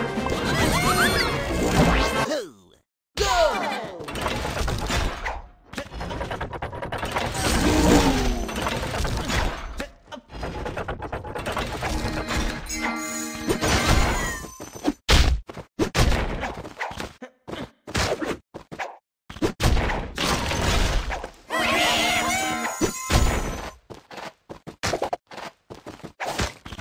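Cartoon game sound effects chime, pop and whoosh.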